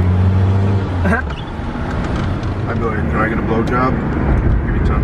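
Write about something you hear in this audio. A man talks nearby inside the car.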